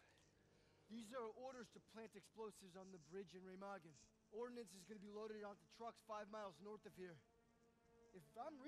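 A third man speaks calmly and steadily close by, explaining at length.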